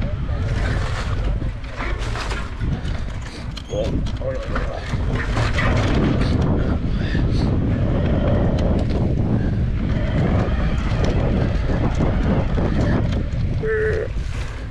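Bicycle tyres crunch and rattle over a dirt trail.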